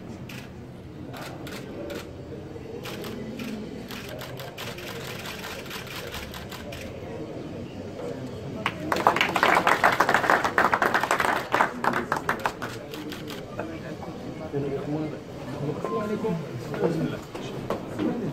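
A crowd of men murmurs and talks indoors.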